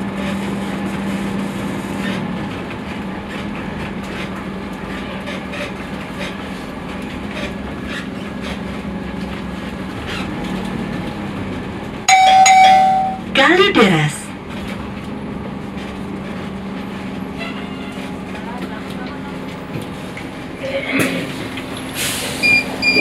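A bus engine hums steadily inside the cabin.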